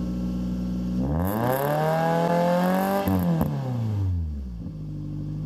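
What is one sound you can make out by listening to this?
A car engine revs up sharply through the exhaust, then falls back to idle.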